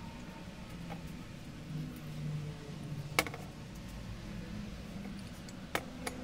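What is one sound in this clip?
Metal engine parts clink and knock together as they are handled.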